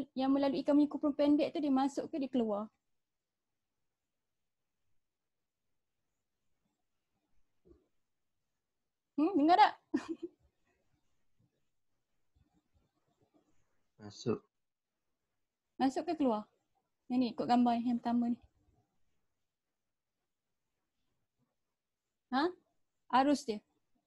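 A young woman speaks calmly in short phrases through a microphone, close up, with pauses between.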